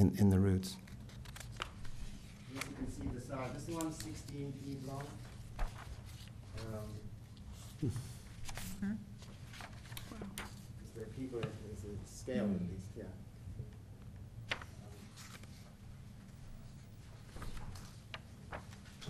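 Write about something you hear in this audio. An elderly man speaks calmly through a microphone in a room with a slight echo.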